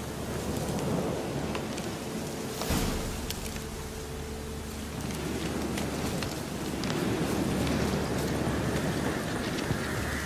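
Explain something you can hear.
Footsteps thud steadily on ground and wooden planks.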